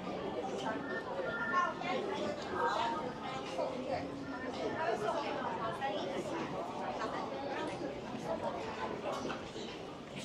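Shoppers murmur and chatter in a large echoing indoor space.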